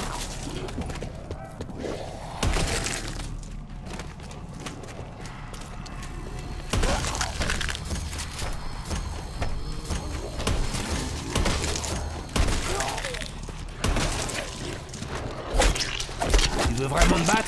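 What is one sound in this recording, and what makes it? Zombies growl and snarl.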